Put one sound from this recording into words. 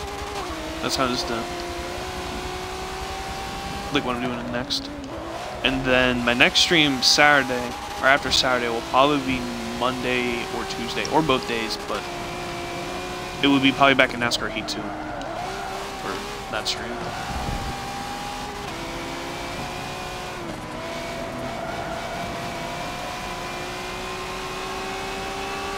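A racing car engine drones steadily and rises and falls in pitch as it shifts gears.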